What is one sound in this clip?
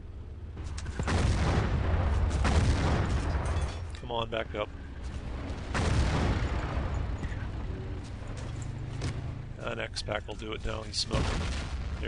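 A tank engine rumbles heavily.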